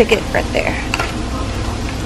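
A straw squeaks and ice rattles in a plastic cup.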